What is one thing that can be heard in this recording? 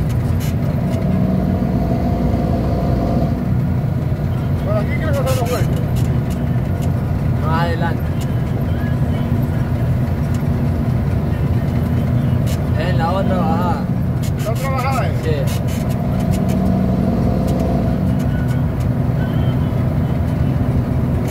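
Tyres hum on the road surface.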